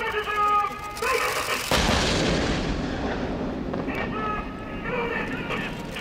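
A tank cannon fires with a loud boom that rolls and echoes across open hills.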